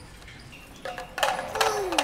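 A bicycle rolls past on the street.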